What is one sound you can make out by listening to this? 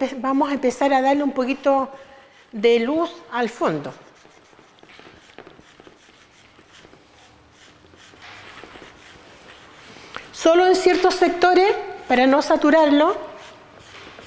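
A middle-aged woman speaks in bursts nearby.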